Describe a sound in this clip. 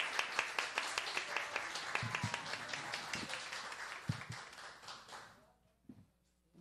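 A group of people applaud in a room.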